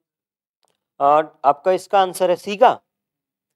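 A man speaks clearly and with animation, close to a microphone.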